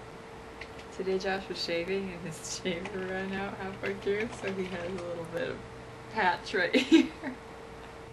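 A young woman talks playfully close by.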